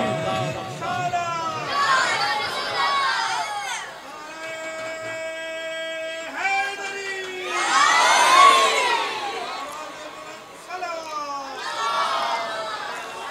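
An elderly man chants in a sustained, melodic voice through a microphone, in an echoing space.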